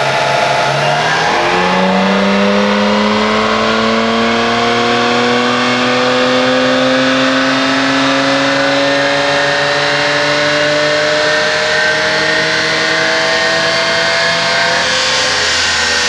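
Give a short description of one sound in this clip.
A car engine revs hard and climbs steadily in pitch, then drops back.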